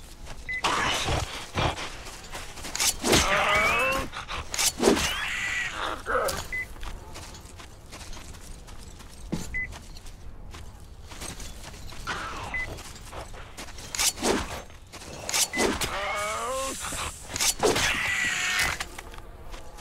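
A creature screeches and snarls.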